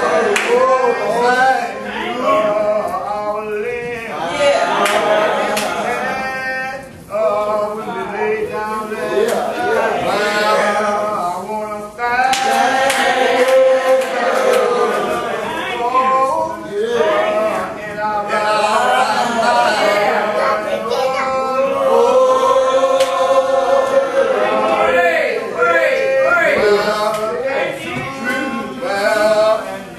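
A man prays aloud in a drawn-out, sing-song voice.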